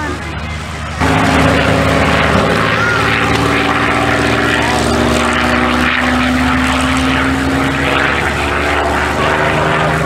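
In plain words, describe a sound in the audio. A propeller plane's engine rumbles steadily close by as it rolls past.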